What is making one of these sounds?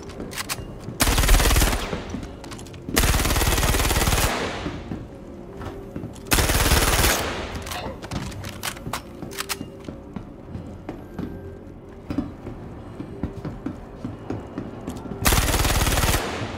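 A gun fires loud, rapid bursts that echo briefly.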